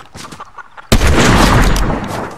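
A gun fires a loud burst.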